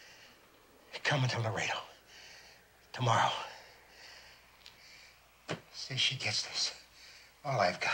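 A man speaks close by in a strained, halting voice.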